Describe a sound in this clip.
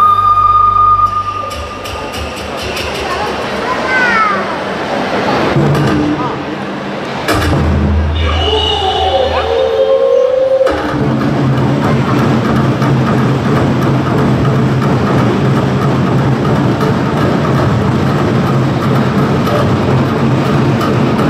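Recorded dance music plays over loudspeakers.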